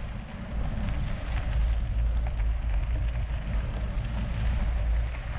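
Bicycle tyres crunch over gravel.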